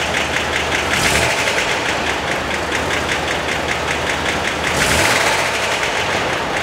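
A car engine briefly revs up and settles back.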